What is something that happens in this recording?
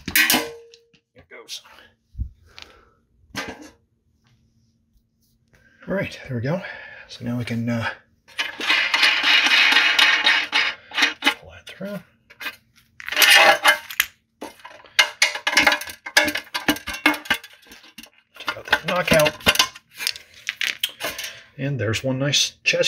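A metal box clanks and rattles as it is handled.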